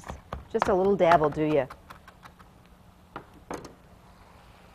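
A knife chops quickly on a cutting board.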